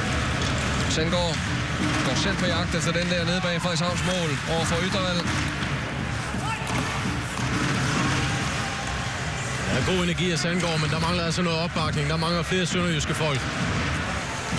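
A crowd chants and sings loudly in an arena.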